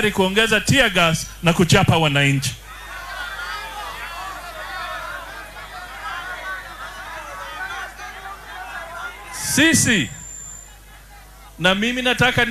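A man speaks forcefully into a microphone, heard through loudspeakers outdoors.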